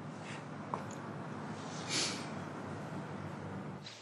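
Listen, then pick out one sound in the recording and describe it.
A young woman sobs quietly.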